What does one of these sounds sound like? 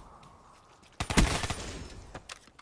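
A rifle fires a quick burst of loud gunshots.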